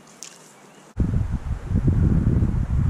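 Shallow water gently ripples over stones.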